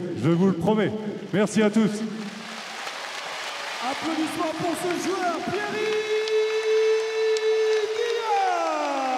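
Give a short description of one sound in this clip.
A man sings into a microphone, heard over loudspeakers in a large echoing hall.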